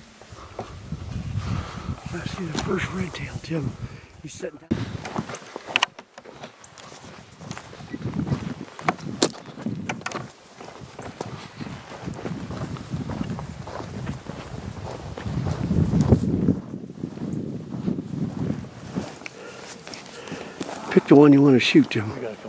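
A man speaks calmly close by, slightly out of breath.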